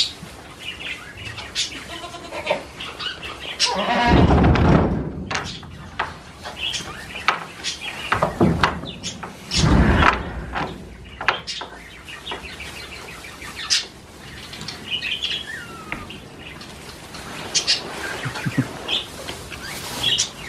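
Goat hooves shuffle and rustle through straw.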